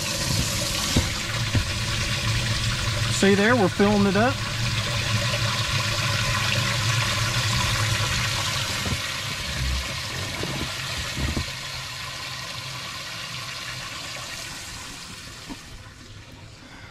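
Water splashes and bubbles steadily into a tank.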